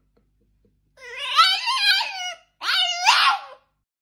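A small dog howls and yowls up close in two long, wavering cries.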